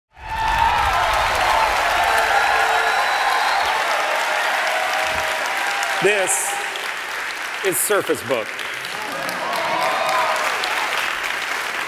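People in a large audience cheer and whoop.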